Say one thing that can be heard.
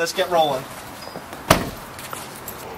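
A car's tailgate slams shut.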